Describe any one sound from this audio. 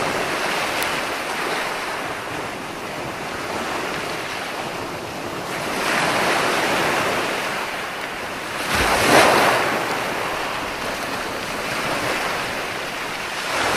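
Waves break and wash up onto the shore in steady, rushing surges.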